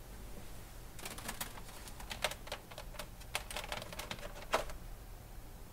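A plastic casing knocks and rattles as it is handled close by.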